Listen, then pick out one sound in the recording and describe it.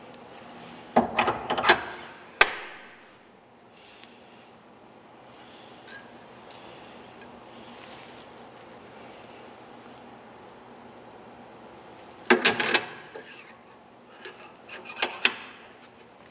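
Metal parts clank and scrape as they slide onto a steel shaft.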